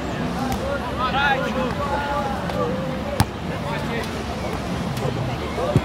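Men and women chatter and call out nearby outdoors.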